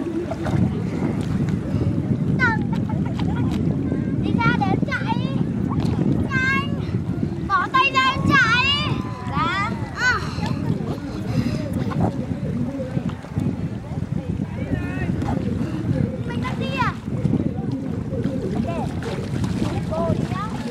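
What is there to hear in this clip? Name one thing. Water splashes and laps gently against a floating board.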